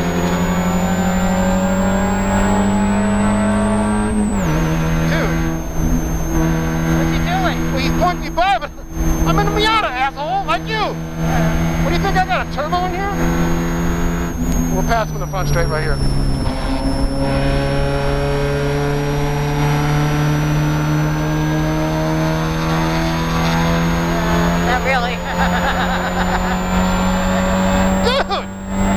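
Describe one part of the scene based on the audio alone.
A Spec Miata's four-cylinder engine roars at high revs, heard from inside the cockpit.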